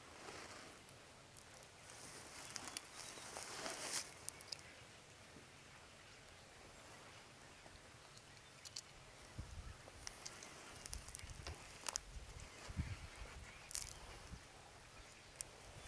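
Small metal parts click and clink close by.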